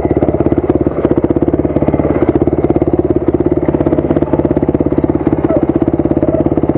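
Tyres crunch over a rough dirt trail.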